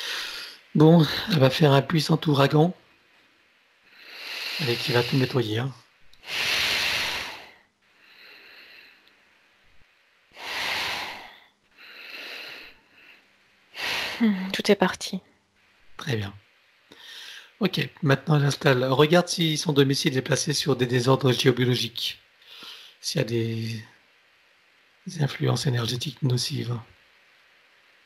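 A middle-aged man speaks calmly through a headset microphone over an online call.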